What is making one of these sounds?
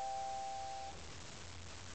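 A piano plays a final soft chord that fades.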